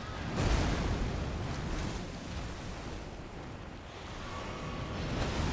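A huge creature stomps and strikes with heavy, rumbling thuds.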